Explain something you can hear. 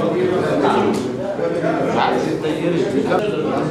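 An elderly man talks with animation nearby.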